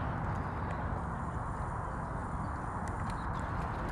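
A dog laps and splashes in shallow water.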